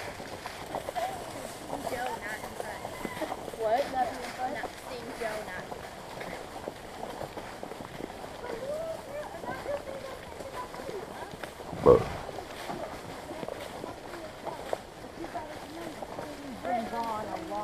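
Horse hooves thud and crunch through dry leaves at a walk.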